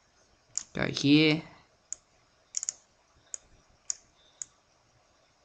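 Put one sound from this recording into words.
A computer mouse clicks several times.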